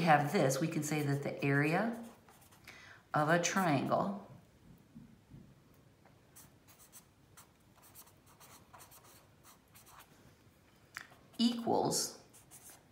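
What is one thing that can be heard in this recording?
A felt-tip marker writes on paper with soft squeaks and scratches.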